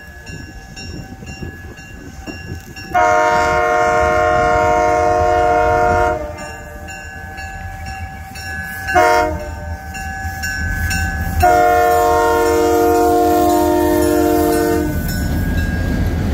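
A diesel locomotive rumbles closer and passes by.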